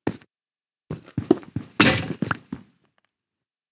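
A pickaxe chips and breaks stone blocks in quick knocks.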